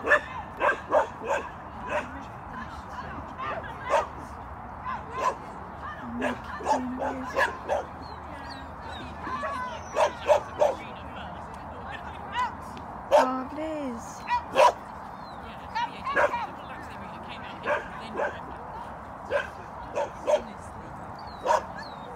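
A woman calls out short, brisk commands outdoors.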